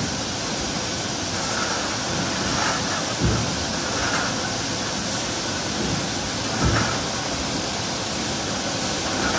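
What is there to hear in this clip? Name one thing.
Factory machinery hums and rumbles steadily in a large hall.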